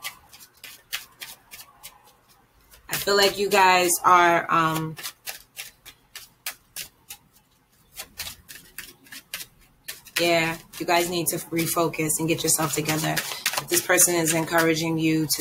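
Paper packaging crinkles and rustles in hands.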